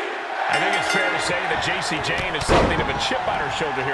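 A body thuds onto a wrestling ring mat.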